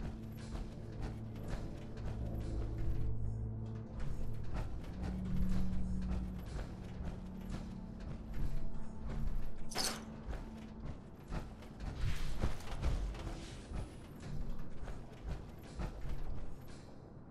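Heavy metallic footsteps thud steadily on a hard floor.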